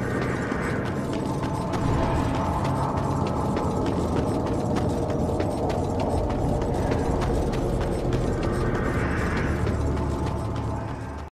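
Heavy armoured footsteps thud and clank on stone at a steady pace.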